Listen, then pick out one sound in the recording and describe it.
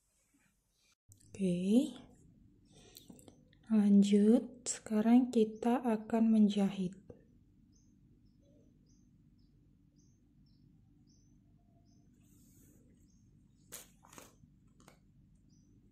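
Yarn rustles softly as hands handle a crocheted piece.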